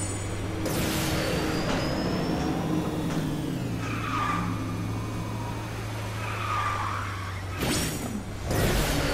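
A small kart engine hums steadily.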